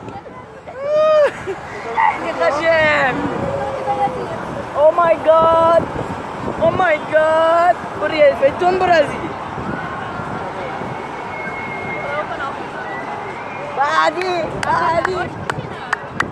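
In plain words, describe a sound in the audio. People scream and whoop on a fairground ride.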